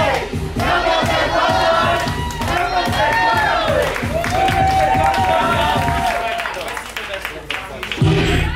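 Loud dance music with a thumping beat and sung vocals plays in a room.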